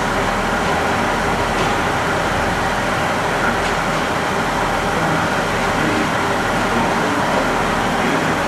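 A diesel train engine idles with a steady rumble.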